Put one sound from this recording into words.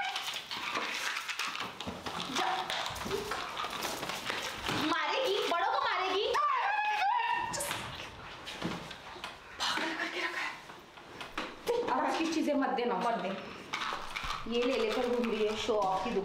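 Young women talk with animation close by.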